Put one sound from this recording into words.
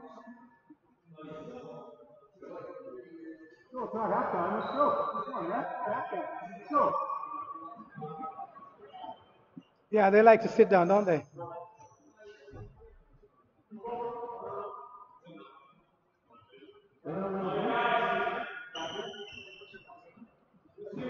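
A man nearby talks and calls out in an echoing hall.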